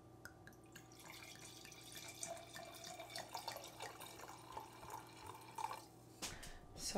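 Wine pours and fizzes into a glass.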